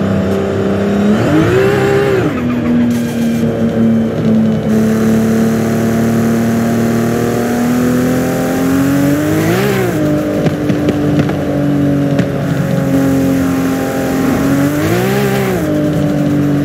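A car engine revs up sharply and drops as gears shift.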